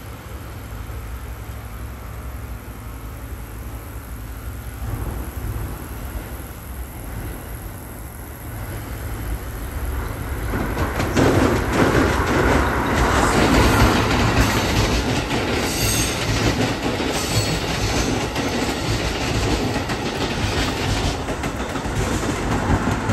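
An electric train approaches and rumbles past close by, growing louder.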